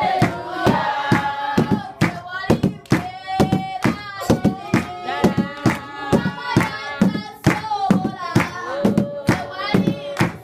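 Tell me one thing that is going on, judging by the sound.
People clap their hands in time.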